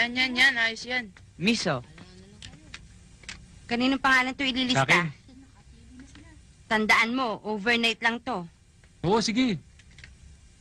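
Young people talk with animation, close by.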